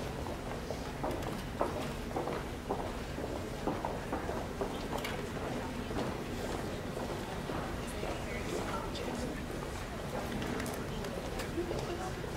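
A crowd murmurs and chatters quietly.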